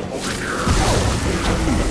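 Electric energy crackles and sizzles loudly.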